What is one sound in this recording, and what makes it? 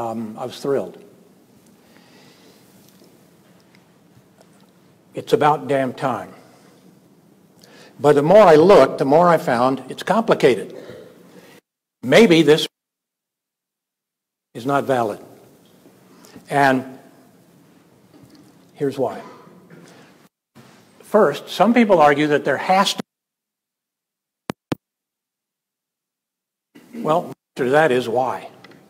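An elderly man speaks calmly into a microphone in a large room, pausing between phrases.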